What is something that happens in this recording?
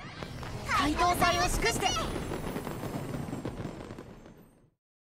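Fireworks pop and crackle overhead.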